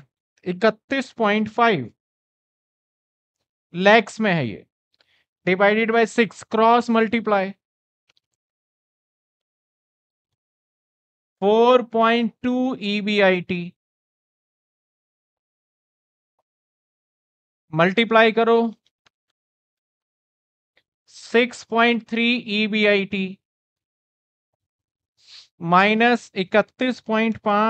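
A man speaks calmly through a close headset microphone, in short bursts with pauses.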